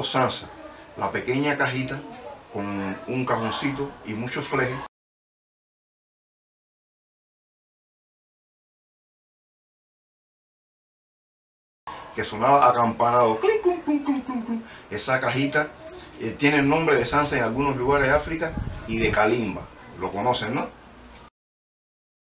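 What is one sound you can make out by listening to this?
A middle-aged man talks calmly and with animation, close by.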